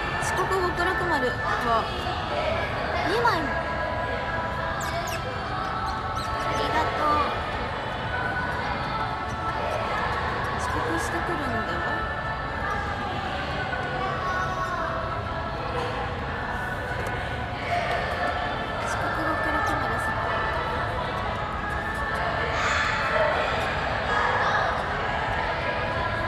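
A young woman talks calmly and close to a phone microphone.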